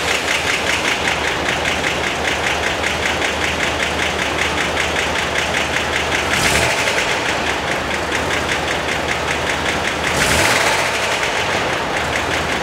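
A car engine idles with a fast, steady rumble.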